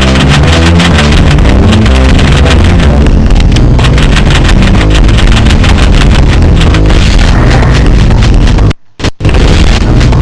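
Upbeat electronic game music plays loudly with a fast, driving beat.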